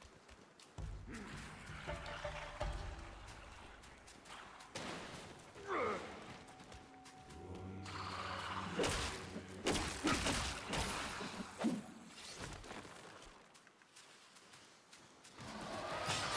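Footsteps crunch on dry ground and grass.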